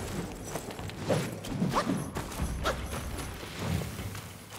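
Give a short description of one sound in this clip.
Footsteps crunch on a dirt floor.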